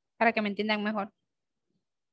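A young woman speaks briefly over an online call.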